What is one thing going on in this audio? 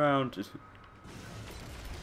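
An explosion bursts with a loud boom.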